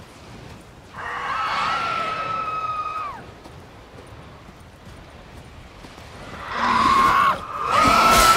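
A winged creature shrieks loudly.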